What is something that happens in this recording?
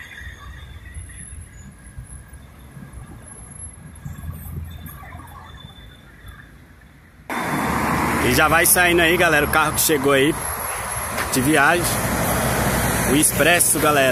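A bus engine rumbles nearby.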